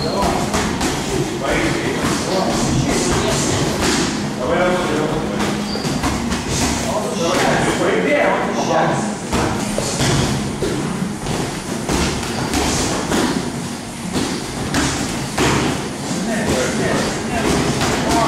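Boxing gloves thump against each other in quick bursts.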